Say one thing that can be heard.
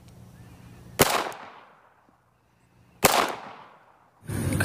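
A pistol fires sharp shots outdoors.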